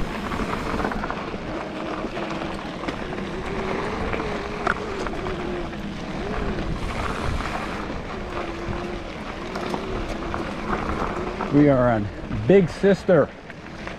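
Bicycle tyres crunch over a dirt and gravel trail.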